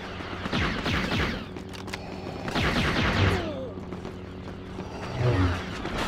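Laser blasts fire in quick bursts.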